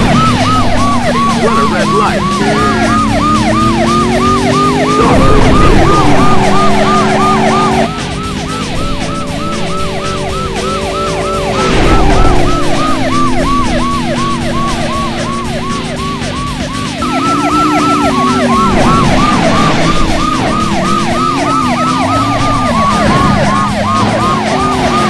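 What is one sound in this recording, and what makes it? A police siren wails rapidly and without pause.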